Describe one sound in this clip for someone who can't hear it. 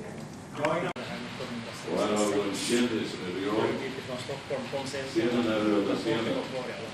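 Elderly men chat nearby in a large hall.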